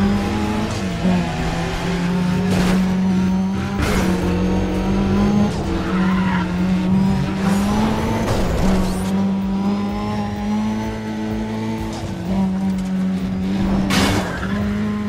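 Cars crash and scrape against each other with sharp metallic bangs.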